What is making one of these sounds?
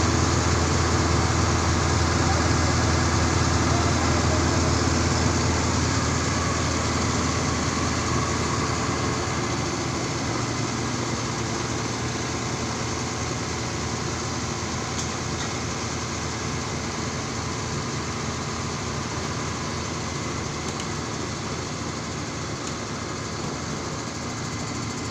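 A truck's diesel engine runs with a steady, loud rumble close by, growing a little quieter over time.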